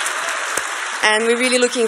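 A young woman speaks cheerfully into a microphone, heard through loudspeakers.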